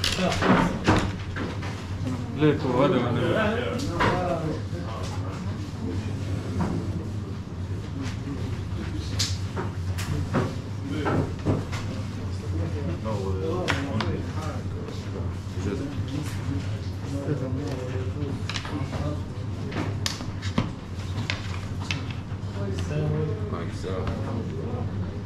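Objects knock and click as a man handles them on a table.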